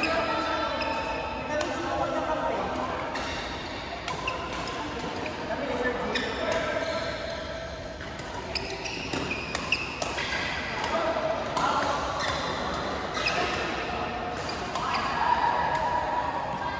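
Players call out to each other across the hall.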